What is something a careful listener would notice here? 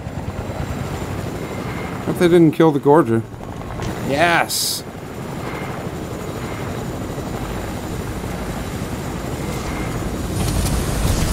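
A helicopter's rotor drones steadily.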